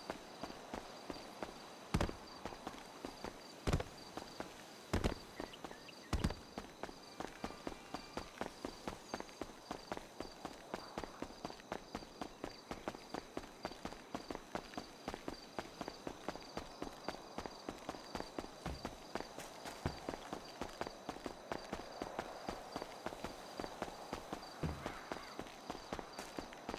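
Quick footsteps slap steadily on pavement.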